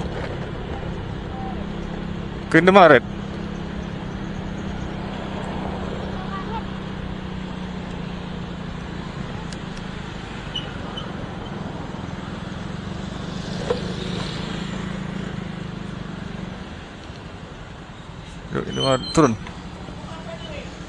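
A motorbike engine hums steadily while riding, then quiets as the bike slows down.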